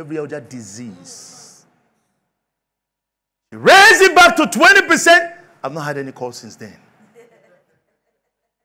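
A middle-aged man speaks with animation through a clip-on microphone, sometimes loudly.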